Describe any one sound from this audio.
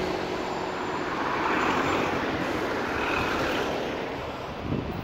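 A diesel taxi engine rumbles as it passes.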